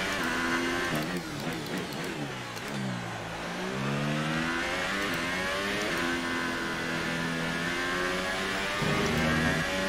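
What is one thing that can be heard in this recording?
Gears shift with sharp changes in engine pitch.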